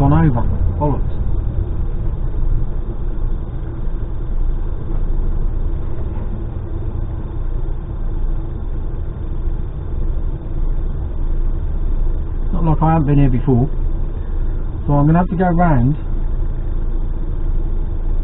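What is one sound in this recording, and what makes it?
A large vehicle's engine rumbles low and steady as it creeps forward and idles in traffic.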